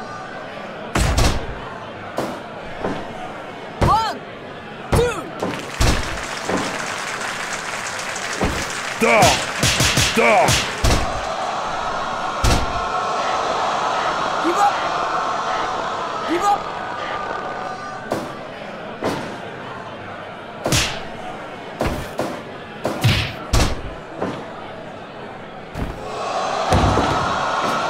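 Heavy blows and slams thud sharply, again and again.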